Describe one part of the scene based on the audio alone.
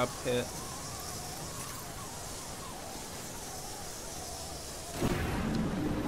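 A zipline rope whirs steadily during a slide.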